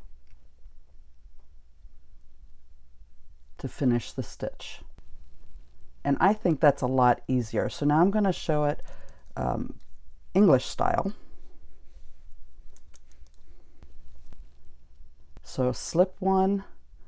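Metal knitting needles click softly against each other.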